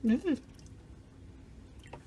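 Milk pours from a carton into a plastic cup.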